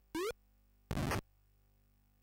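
A retro video game gives a short harsh crackling buzz.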